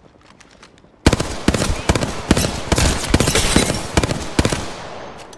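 A rifle fires in rapid loud bursts.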